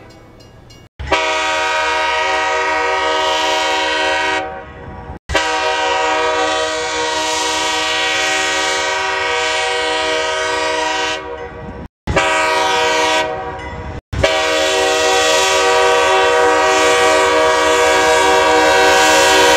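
A diesel locomotive's air horn sounds in several long blasts.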